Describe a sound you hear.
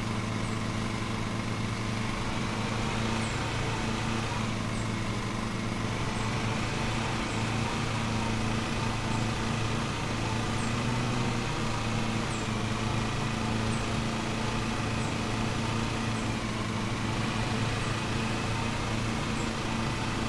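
A ride-on lawn mower engine drones steadily.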